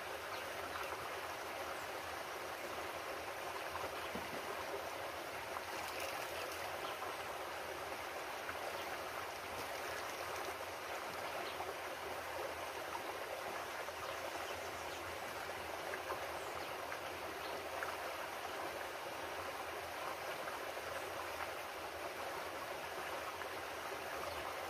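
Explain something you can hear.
A shallow stream babbles steadily over rocks.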